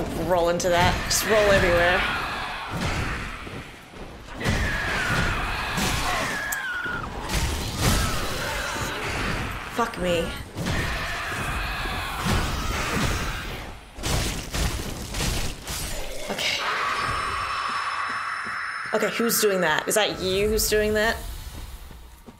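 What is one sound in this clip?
Metal weapons clang and slash in a fight.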